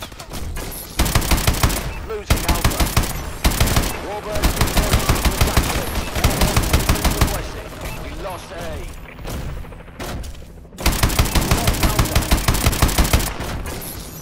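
Heavy machine guns fire in rapid, loud bursts.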